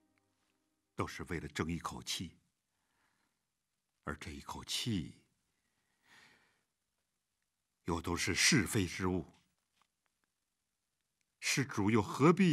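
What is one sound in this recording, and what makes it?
An elderly man speaks calmly and slowly, close by, with pauses between phrases.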